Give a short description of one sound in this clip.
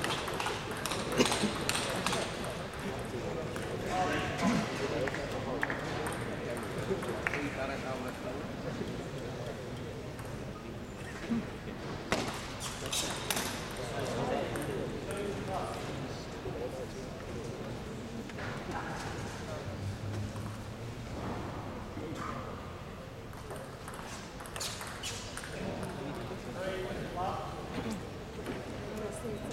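A seated crowd murmurs and chatters in a large echoing hall.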